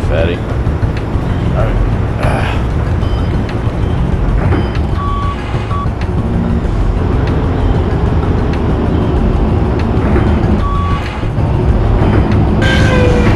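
A forklift engine rumbles steadily as it drives along.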